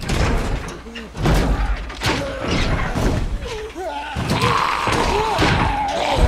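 Hands bang against a wooden wall.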